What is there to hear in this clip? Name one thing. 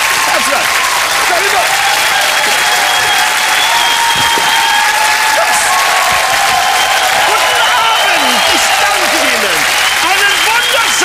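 A large studio audience claps loudly and steadily.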